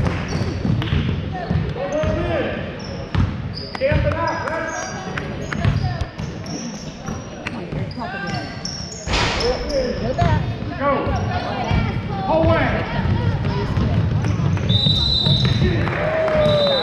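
Spectators and players shout and call out across the gym.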